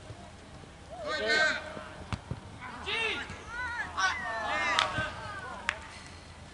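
Young men shout across an open field in the distance.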